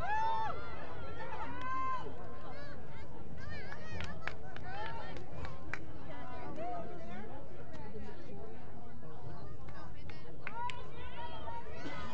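Young women shout and call out to each other on an open field.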